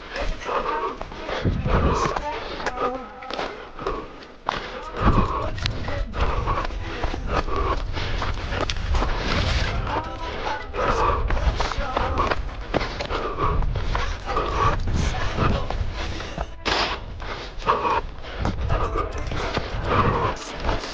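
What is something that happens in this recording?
Footsteps crunch and rustle quickly through dry brush and gravel.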